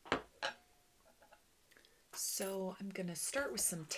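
A stone taps down onto a wooden table.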